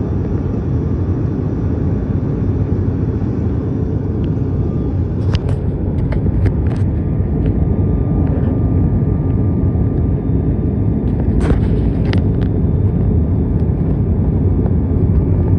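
A propeller engine drones loudly and steadily from close by.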